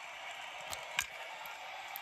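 A bat cracks sharply against a ball through a small loudspeaker.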